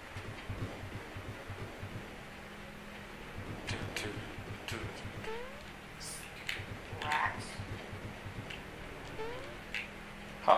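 Light game sound effects patter.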